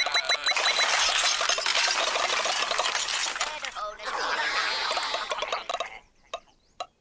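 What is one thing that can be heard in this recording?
Busy electronic game sound effects chirp and blip rapidly.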